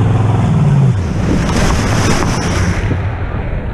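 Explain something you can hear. Water splashes heavily as riders tumble into the sea.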